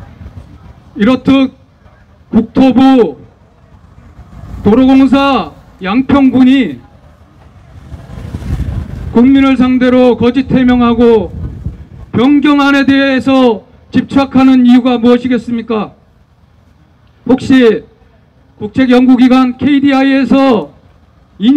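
A man speaks loudly through a microphone and loudspeaker, outdoors, in short bursts.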